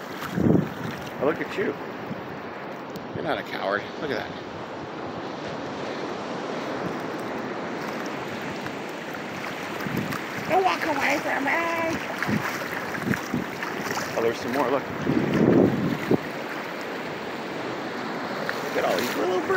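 Shallow water laps gently at the shore.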